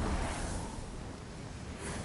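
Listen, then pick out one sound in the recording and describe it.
A whooshing rush of wings sweeps past.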